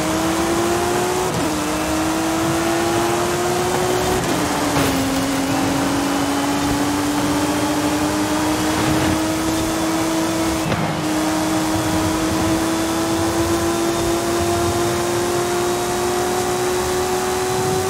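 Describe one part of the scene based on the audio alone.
Tyres hum on asphalt at high speed.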